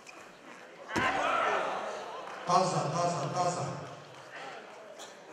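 A crowd in a large hall cheers and applauds loudly.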